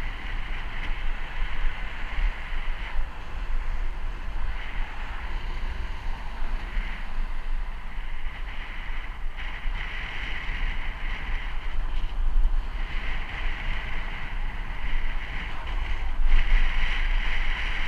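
Wind buffets the microphone with a steady low rumble.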